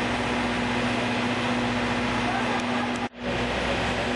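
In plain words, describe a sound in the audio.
A crowd of men and women chatter at a distance.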